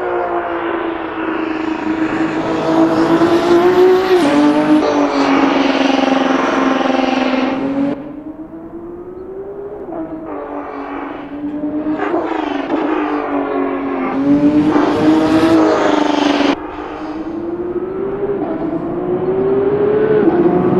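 A race car engine roars loudly, its pitch rising and dropping as it shifts gears.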